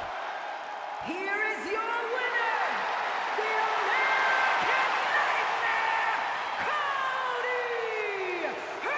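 Fans in a crowd whistle loudly.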